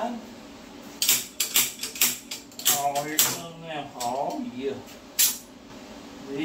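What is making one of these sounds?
Metal tools clink and clatter against each other.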